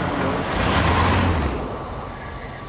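A fire bursts into flames with a roaring whoosh.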